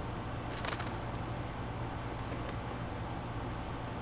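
A small bird flaps its wings as it flies.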